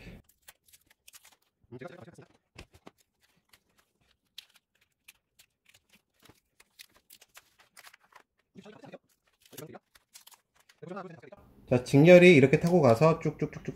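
Plastic wrapping crinkles and tears by hand.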